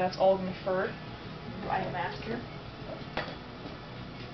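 A young woman speaks briefly and loudly nearby.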